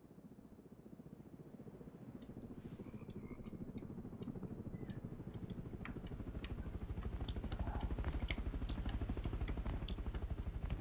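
A helicopter's rotor thumps rapidly and grows louder as it approaches.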